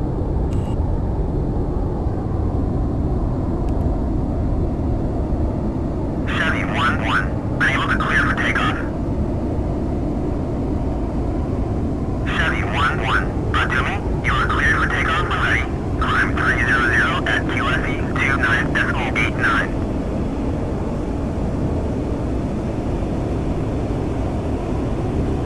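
A jet engine roars steadily in a low, even rumble.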